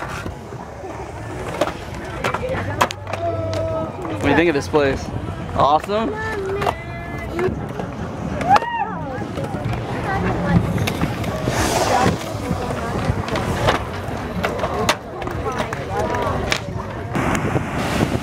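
Skateboard wheels roll and clatter on concrete.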